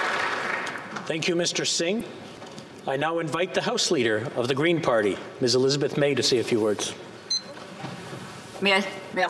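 A middle-aged man speaks formally into a microphone, reading out.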